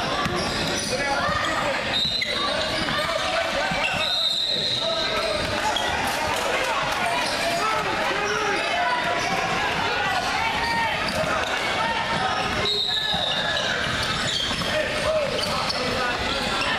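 Sneakers squeak on the wooden floor.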